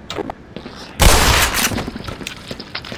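A gun fires loudly in a short burst with an echo.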